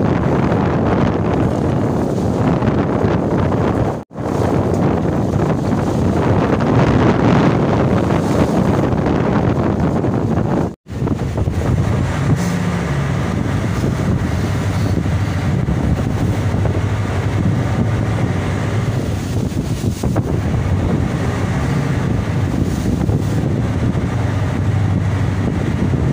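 Wind buffets loudly across open water.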